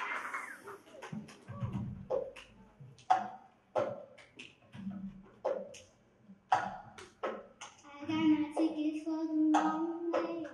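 Plastic cups knock and clack on a tabletop.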